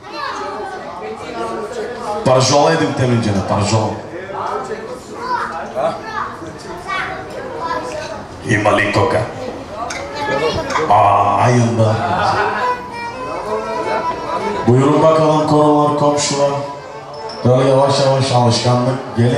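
A young man sings loudly through a microphone and loudspeakers in an echoing room.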